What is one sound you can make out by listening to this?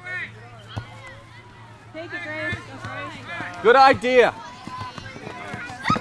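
A soccer ball is kicked with a dull thud.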